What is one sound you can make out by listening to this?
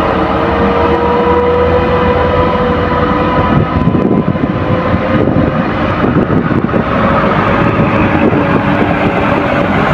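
A heavily loaded diesel truck labors uphill and pulls away.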